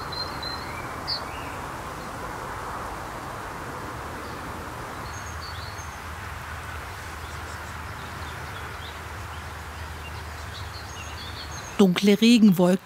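Small birds chirp faintly outdoors.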